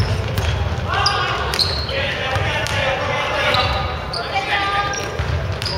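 Young players shout and call out to each other in an echoing hall.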